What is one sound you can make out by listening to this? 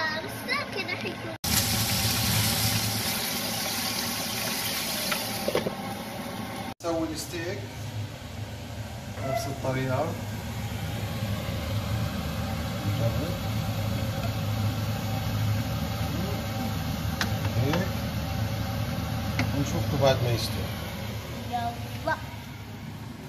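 Meat sizzles in a hot frying pan.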